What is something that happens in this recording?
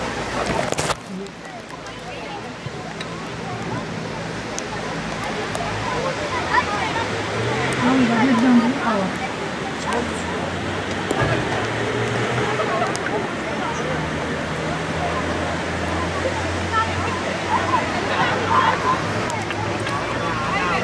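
Children's voices shout and chatter from a distance outdoors.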